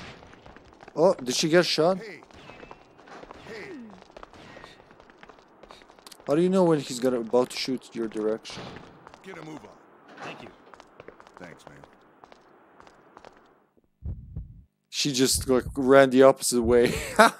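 A young man talks with animation into a close headset microphone.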